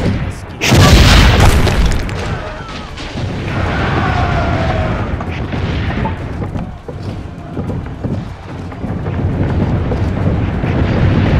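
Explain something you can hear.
Distant cannon fire and battle noise rumble on steadily.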